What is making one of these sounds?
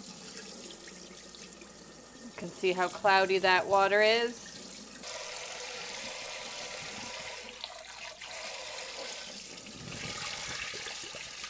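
Water pours out of a bowl and splashes into a sink.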